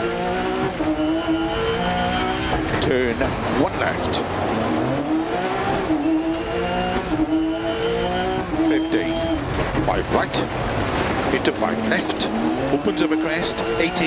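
Gravel crackles and sprays under the car's tyres.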